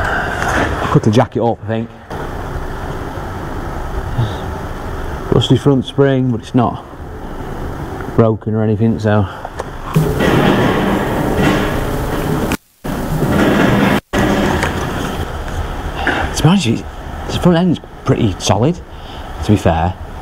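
A man talks close to the microphone.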